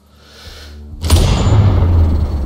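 A rifle shot cracks loudly.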